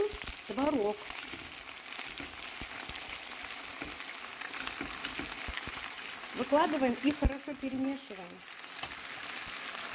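A fork stirs and scrapes pasta in a pan.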